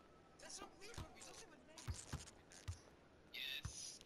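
A basketball bounces on a wooden court with hard thumps.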